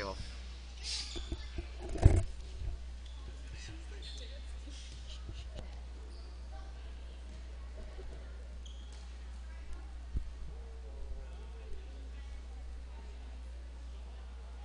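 Young women chatter and call out to each other in a large echoing gym.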